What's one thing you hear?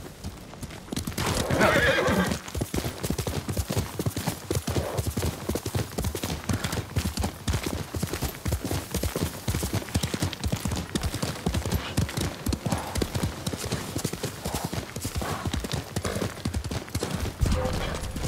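A horse gallops with rapid hoofbeats on a dirt path.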